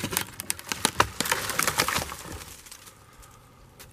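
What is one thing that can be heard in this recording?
A dead tree cracks and falls onto the leaf litter.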